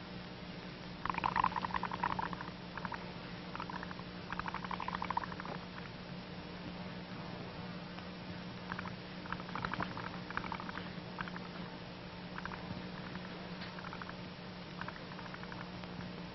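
Soap bubbles gurgle and crackle softly.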